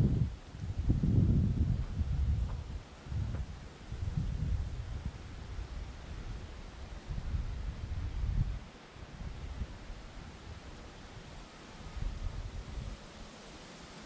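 Wind gusts rumble outdoors and buffet the microphone.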